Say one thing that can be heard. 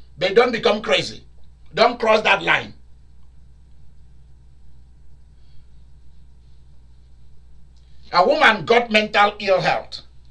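A man speaks with animation close by, in pauses.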